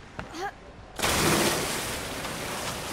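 A body splashes heavily into water.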